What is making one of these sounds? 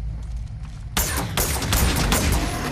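A gun fires in a rapid, loud burst.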